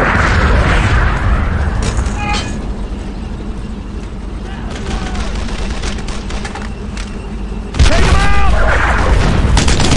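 A tank engine rumbles low.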